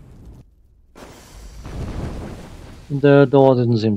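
A burst of flame whooshes and roars.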